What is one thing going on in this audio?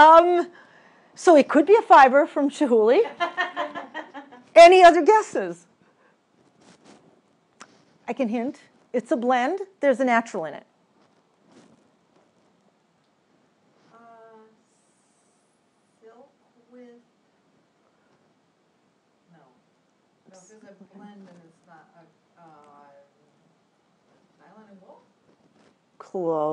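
A young woman speaks with animation through a microphone, pausing often.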